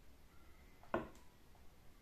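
A glass clinks down on a table.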